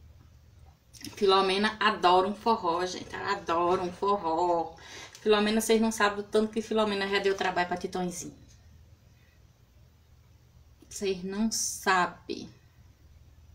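A middle-aged woman talks with animation, close by.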